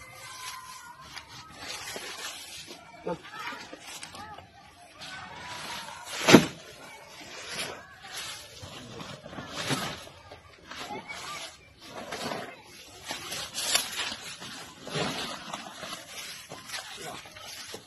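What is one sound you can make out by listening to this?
Leaves and branches rustle as a man pushes through bushes.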